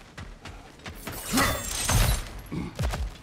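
A whip of flame whooshes through the air.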